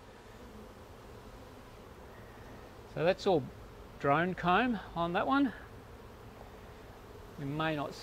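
Bees buzz softly up close.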